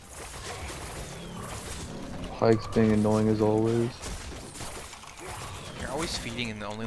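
Video game spell effects whoosh and chime.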